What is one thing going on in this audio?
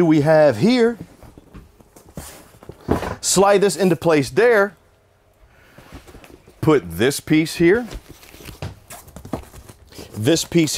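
Cushions thump and rustle as a man moves them.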